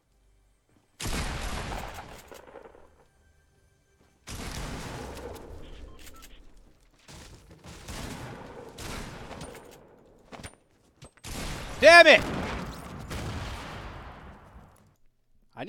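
Gunshots fire in bursts, with echoes ringing after them.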